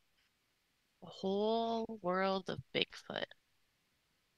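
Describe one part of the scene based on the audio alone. A woman speaks briefly through an online call.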